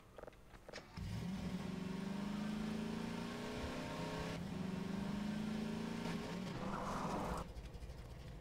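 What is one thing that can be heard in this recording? A small buggy engine drones steadily while driving.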